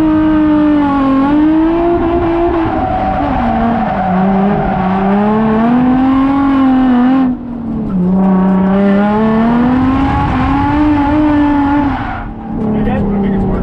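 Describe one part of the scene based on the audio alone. A car engine revs loudly from inside the car, rising and falling, with brief drops.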